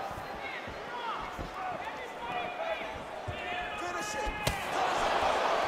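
A crowd cheers and whistles in a large arena.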